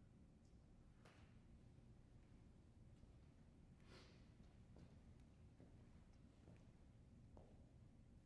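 Footsteps tread on a wooden stage in a large hall.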